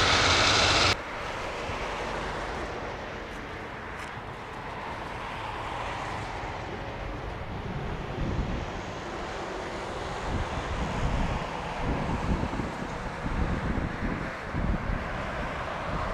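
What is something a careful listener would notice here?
Jet engines rumble in the distance as a plane approaches to land.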